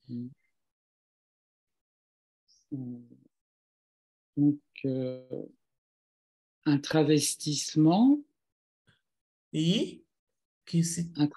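A woman speaks with animation through an online call, in short bursts.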